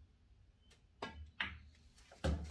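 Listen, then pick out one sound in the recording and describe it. Billiard balls knock against each other.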